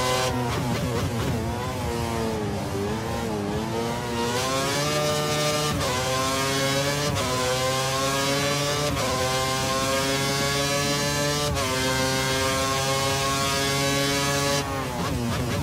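A racing car engine screams loudly, rising in pitch through each gear and dropping sharply at every gear change.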